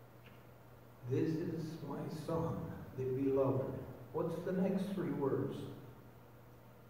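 An older man speaks calmly through a microphone in a large echoing room.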